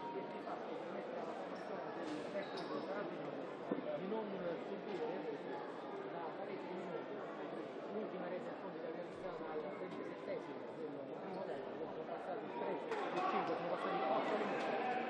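A crowd of spectators chatters throughout a large echoing hall.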